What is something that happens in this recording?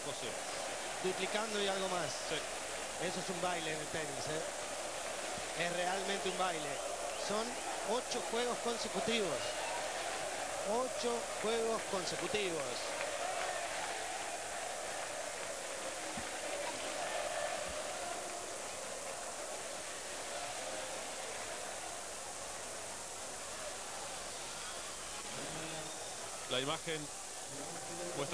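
A large crowd applauds loudly in an open stadium.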